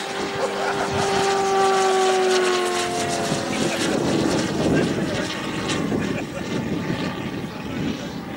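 A propeller plane's engine drones overhead, its pitch falling slightly as it passes and fades away.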